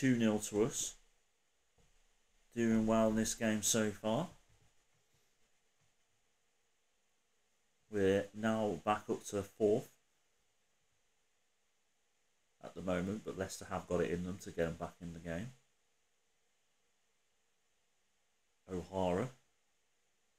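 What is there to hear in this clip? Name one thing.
A man talks into a microphone in short bursts, calmly and close up.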